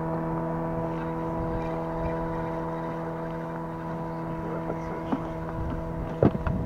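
Water splashes against a moving boat.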